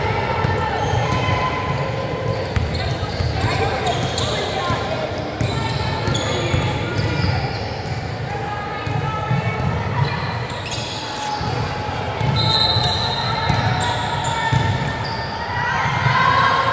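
Young women call out to each other during play in a large echoing gym.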